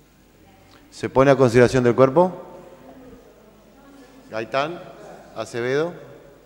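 A man speaks through a microphone in a large echoing hall.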